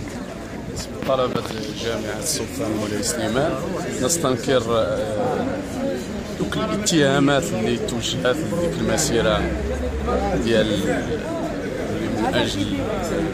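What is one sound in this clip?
A young man speaks close up, with animation.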